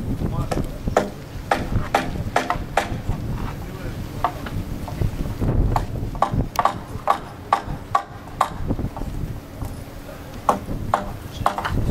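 A hammer knocks sharply on a wooden board, again and again.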